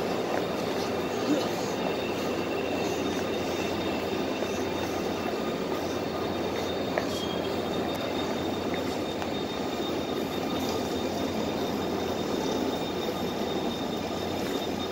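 A train rolls past with a steady rumble and rattle of wheels on rails.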